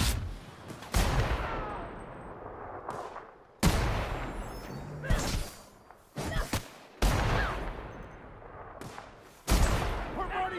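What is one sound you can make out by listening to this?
A rifle fires loud single shots that echo.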